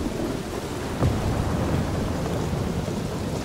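Thunder cracks and rumbles.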